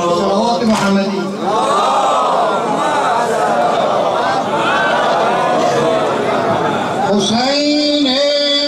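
A crowd of men sings along in unison.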